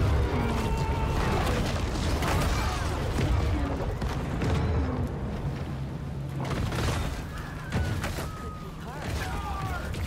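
Water splashes and crashes loudly.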